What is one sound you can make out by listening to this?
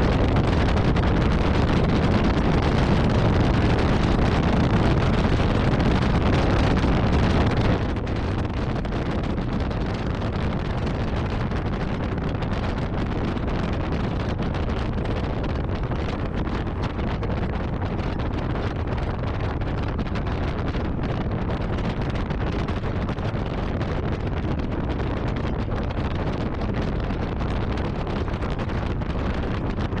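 Wind roars loudly against a microphone on a moving vehicle.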